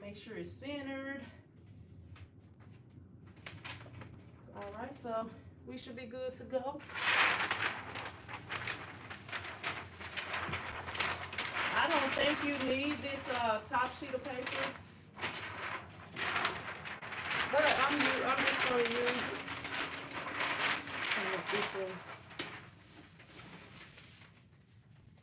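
Large sheets of paper rustle and crinkle as they are handled.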